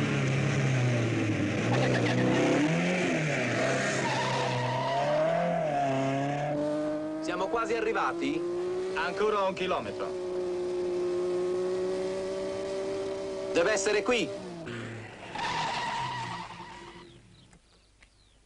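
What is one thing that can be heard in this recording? A car engine revs and hums while driving.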